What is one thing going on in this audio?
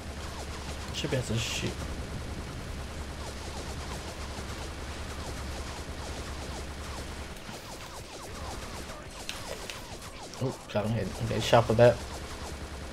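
Guns fire in short, loud bursts.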